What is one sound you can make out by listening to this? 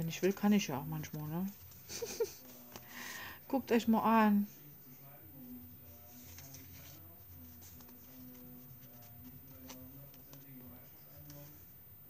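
Paper cards rustle and slide against each other as they are handled.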